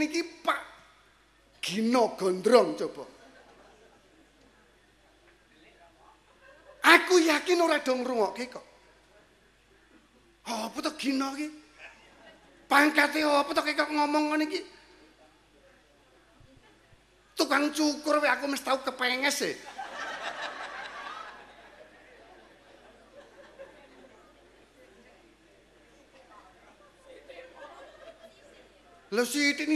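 A middle-aged man preaches with animation into a microphone, in bursts with long pauses, in a room with a slight echo.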